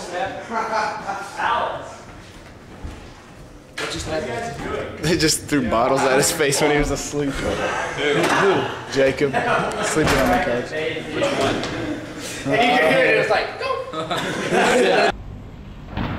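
Several young men talk excitedly among themselves.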